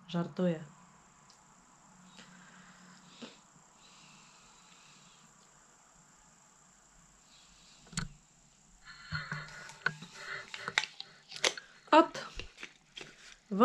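A woman speaks briefly and calmly close by.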